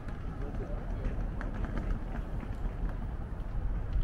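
Suitcase wheels roll over paving stones.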